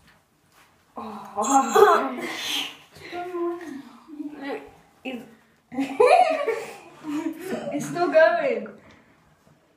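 Boys giggle and laugh close by.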